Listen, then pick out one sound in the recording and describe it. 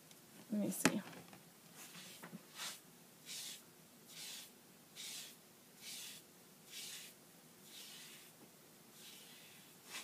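A foam brush strokes across a smooth mat with soft swishes.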